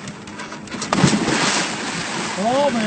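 A man splashes heavily into water.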